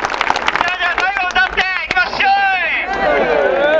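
A second young man shouts through a megaphone.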